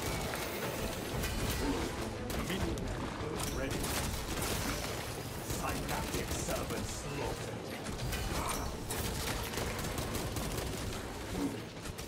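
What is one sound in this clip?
Blades clash and slash against creatures.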